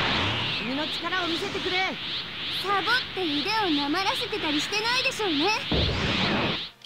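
An energy aura roars and crackles.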